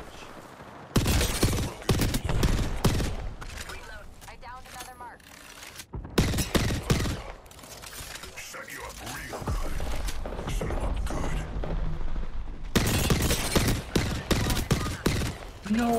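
Rapid gunshots ring out in bursts.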